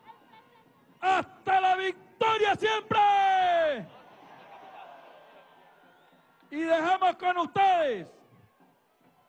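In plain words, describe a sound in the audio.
A man shouts with energy through a microphone and loudspeakers.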